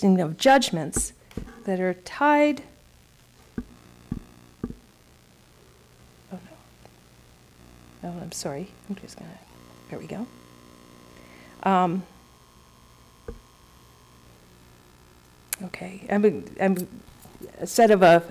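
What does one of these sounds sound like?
A woman speaks calmly into a microphone, in a large hall with some echo.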